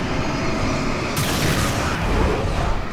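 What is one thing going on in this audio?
A blast goes off with a loud rushing burst.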